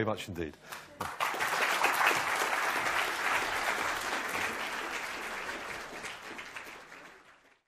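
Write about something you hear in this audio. An audience applauds loudly in a large hall, then fades away.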